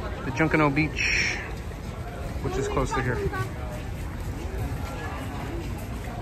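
A crowd of adults and children chatters nearby.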